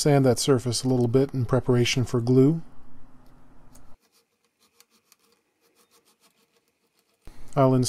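A small metal part clicks softly into a wooden guitar headstock.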